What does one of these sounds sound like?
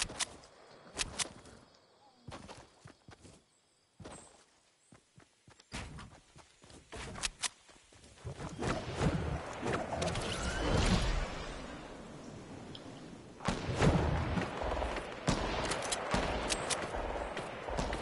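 Footsteps thud quickly on grass.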